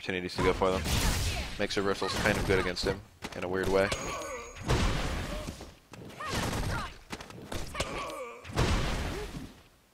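A woman's voice grunts and shouts with effort.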